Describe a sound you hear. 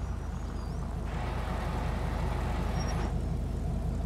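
A car engine revs as a car pulls out.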